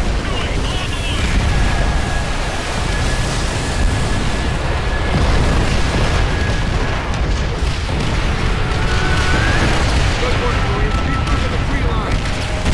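Explosions boom and rumble nearby.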